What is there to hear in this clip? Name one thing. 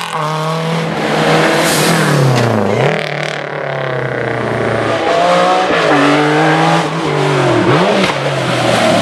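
A historic rally car engine revs hard and fades into the distance.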